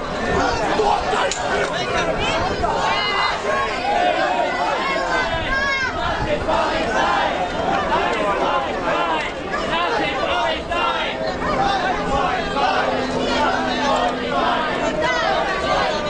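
A crowd of men and women talk and shout close by, all at once.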